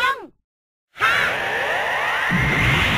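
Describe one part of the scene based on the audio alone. A video game energy blast whooshes and roars loudly.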